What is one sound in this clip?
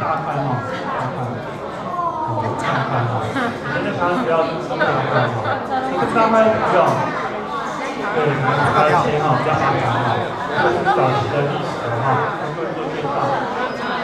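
A young man speaks with animation to a group, close by.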